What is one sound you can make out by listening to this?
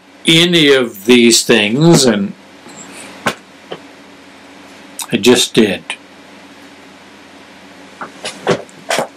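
A middle-aged man speaks with animation close to a microphone, in short bursts with pauses.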